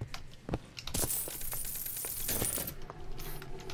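A toilet flushes with a rush of water.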